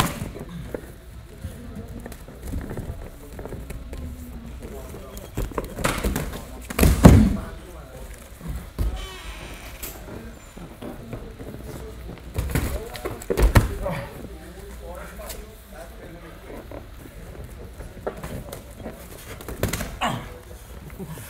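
Gloved punches and kicks land with dull thumps.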